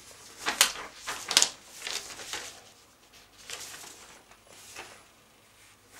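Paper sheets rustle as they are turned.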